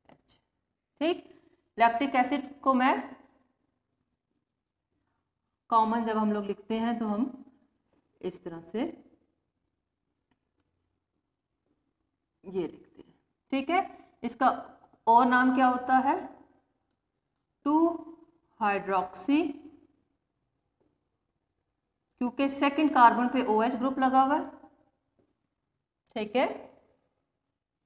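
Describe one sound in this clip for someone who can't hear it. A woman speaks calmly and clearly in short phrases, as if explaining.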